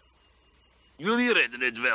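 A boy speaks briefly.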